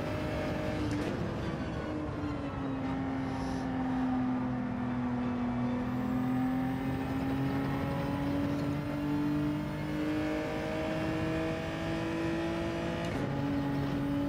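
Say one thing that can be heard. A gear shift briefly cuts a racing car engine's roar.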